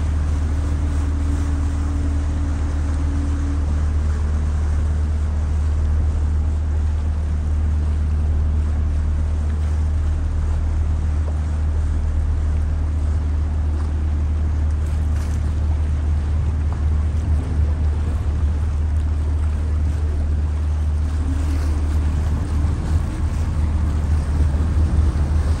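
A boat's engine hums low and steady.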